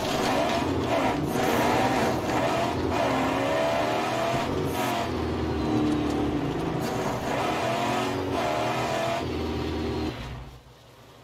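A car engine roars and revs at speed.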